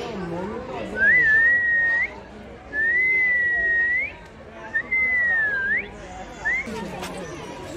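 A bird gives long, clear whistling calls close by.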